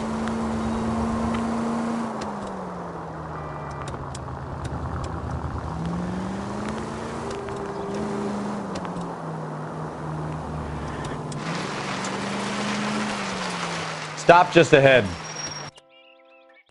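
A car engine hums and its pitch rises and falls as the car speeds up and slows down.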